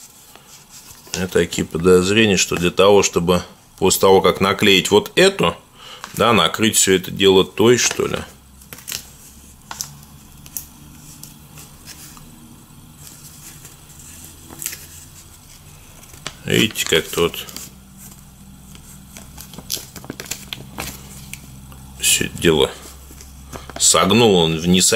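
Paper crinkles and rustles as it is unfolded and handled.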